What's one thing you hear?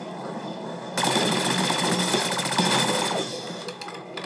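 An automatic gun fires a rapid burst of shots.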